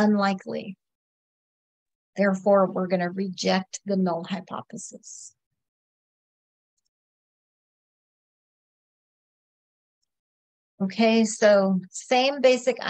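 A woman explains calmly into a close microphone, with long pauses.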